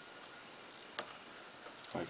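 Small metal parts click together on a hard surface.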